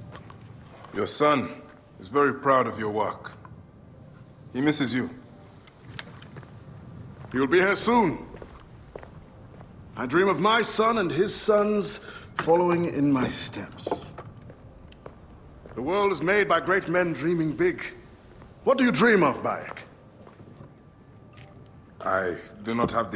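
An older man answers in a deep, calm voice.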